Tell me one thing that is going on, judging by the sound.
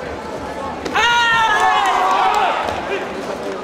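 A young man shouts sharply in a large echoing hall.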